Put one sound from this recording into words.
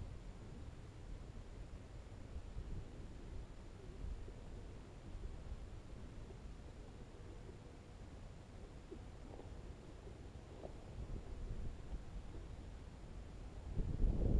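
Wind blows and rumbles across a microphone outdoors.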